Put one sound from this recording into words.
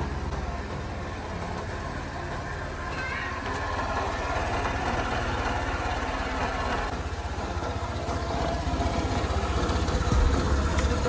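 A scooter engine idles with a steady, rapid putter close by.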